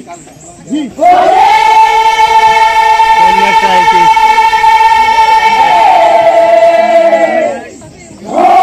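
Several people shout long, drawn-out calls together.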